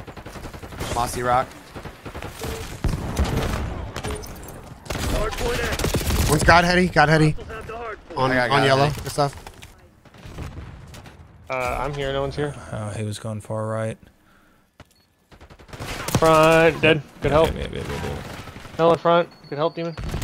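Young men talk with animation over microphones.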